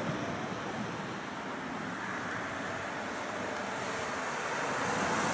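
A car approaches along the road, its tyres and engine growing louder.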